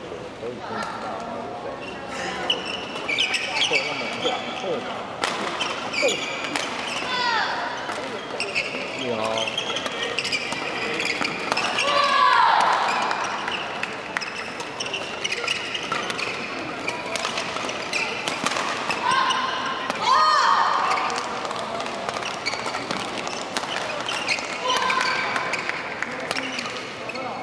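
Badminton rackets strike a shuttlecock in quick rallies.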